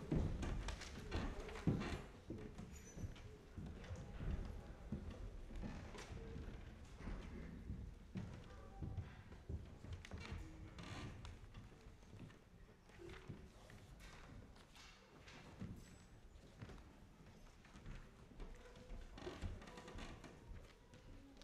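Footsteps shuffle softly on a carpeted floor.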